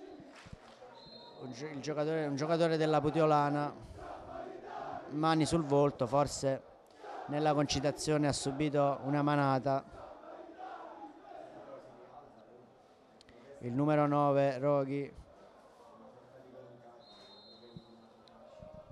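A referee's whistle blows short and shrill in the distance.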